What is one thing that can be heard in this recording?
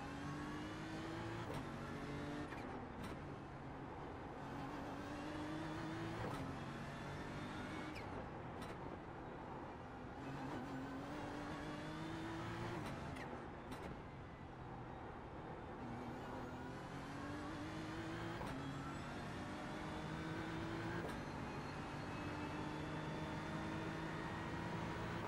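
A racing car engine revs hard, rising in pitch and dropping sharply with each gear change.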